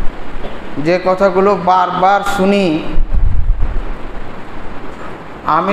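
A man speaks through a microphone in a chanting tone, echoing in a large hall.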